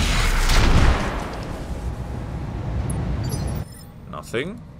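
An explosion booms and fire roars.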